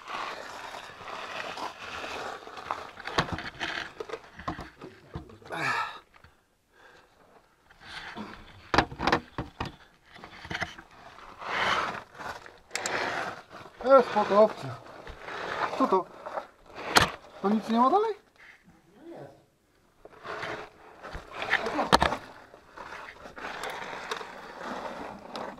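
Clothing rustles and scrapes against rock as a person crawls.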